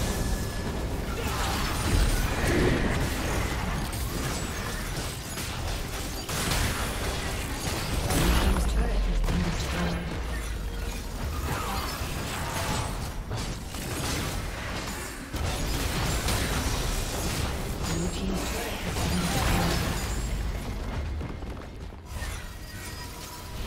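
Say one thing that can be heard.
Spell blasts and weapon clashes crackle and boom in quick bursts.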